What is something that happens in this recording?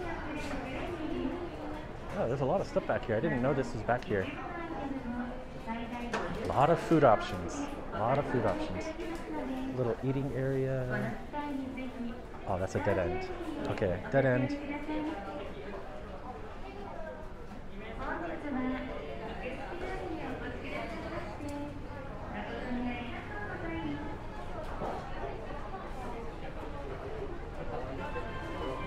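A crowd of people chatters nearby in an echoing indoor space.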